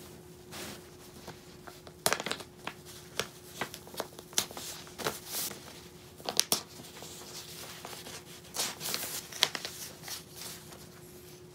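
Hands rub and press paper against cloth.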